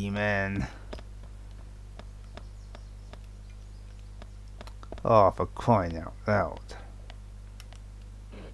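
Quick footsteps tap on pavement.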